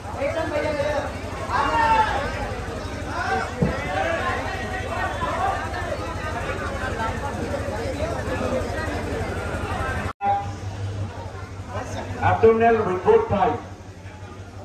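A crowd of men cheers and shouts loudly in an echoing hall.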